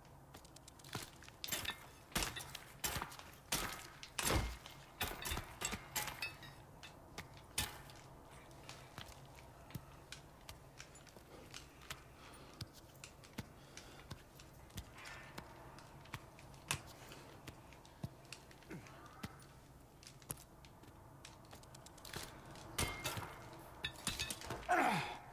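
A climbing axe bites into rock with sharp knocks.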